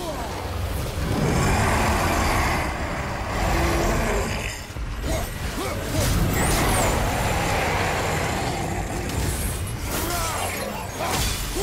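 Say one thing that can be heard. A giant stone creature stomps and crashes loudly.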